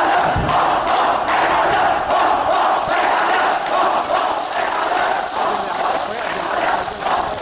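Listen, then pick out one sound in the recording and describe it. A large crowd shouts and chants loudly outdoors.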